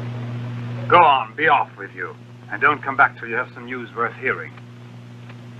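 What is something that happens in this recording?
A man speaks firmly and clearly.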